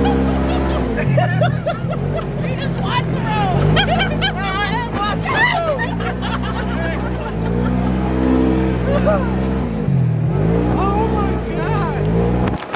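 A young woman laughs and shrieks close by.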